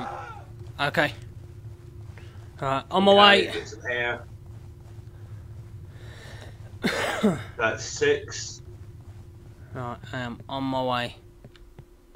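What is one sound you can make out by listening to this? A man talks in bursts close to a microphone.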